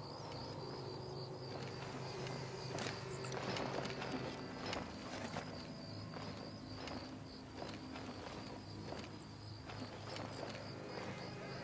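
Footsteps scuff over rock.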